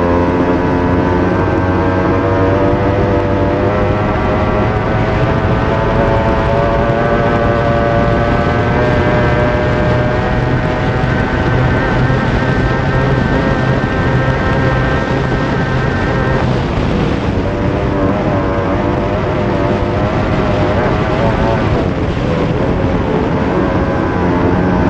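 A powerboat engine roars loudly at high speed.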